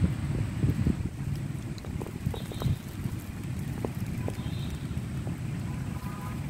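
Raindrops patter on an umbrella close by.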